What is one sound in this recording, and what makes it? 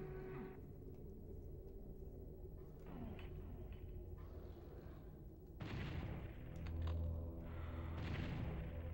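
Deep game music hums steadily in the background.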